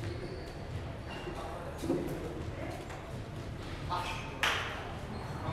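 A table tennis ball clicks against paddles and the table.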